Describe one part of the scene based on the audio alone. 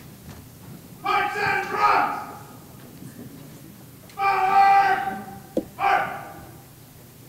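A man's voice echoes through loudspeakers in a large hall.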